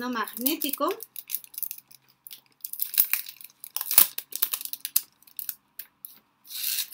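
Paper and plastic wrapping rustle and crinkle in someone's hands.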